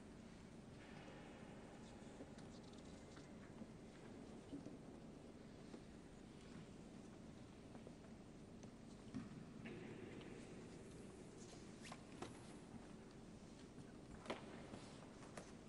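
A large crowd murmurs softly in a vast echoing hall.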